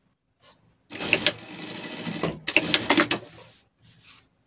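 A sewing machine runs, stitching quickly.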